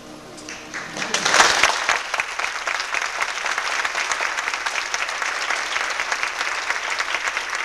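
An audience claps loudly in a large room.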